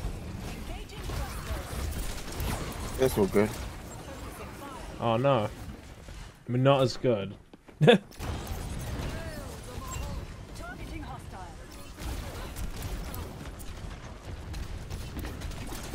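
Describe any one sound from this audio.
Rapid energy weapon shots crackle and zap.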